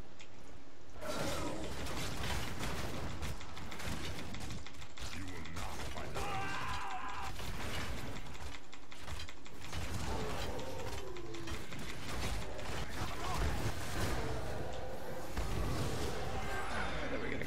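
Spells and weapons clash in a fast, noisy fight.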